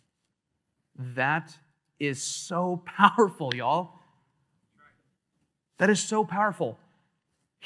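A man speaks with animation through a microphone, pausing between phrases.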